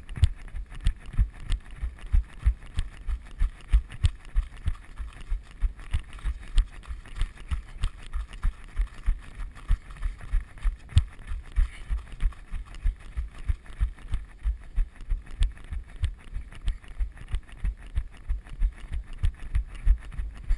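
Footsteps crunch and thud on a gravel path at a steady running pace.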